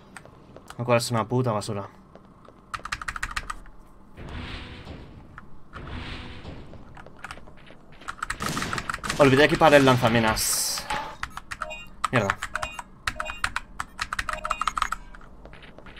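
Keyboard keys click and clatter quickly.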